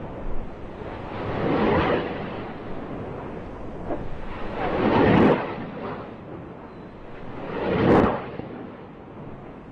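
Rockets roar loudly as they launch one after another.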